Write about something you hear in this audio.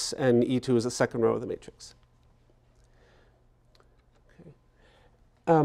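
A man lectures into a microphone in a large room, pausing between phrases.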